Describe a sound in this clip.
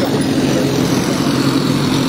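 A motorbike engine hums as it pulls away.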